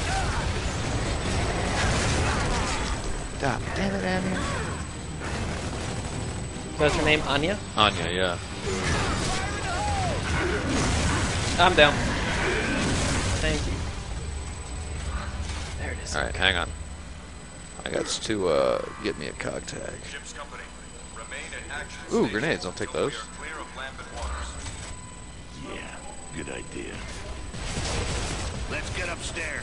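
A young man talks with animation through a microphone.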